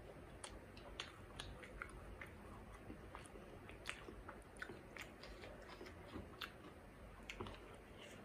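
A young woman chews food close to a microphone with crisp, wet mouth sounds.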